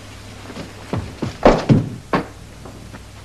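A man's footsteps thud.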